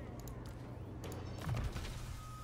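A game's menu makes soft clicking sounds as it opens.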